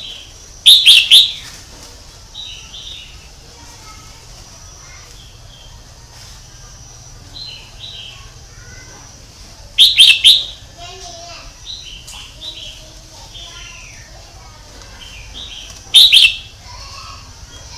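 A songbird sings loud, bright bursts of whistled notes, with softer chirps in between.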